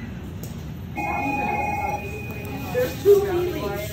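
A medical monitor sounds a steady electronic alarm tone.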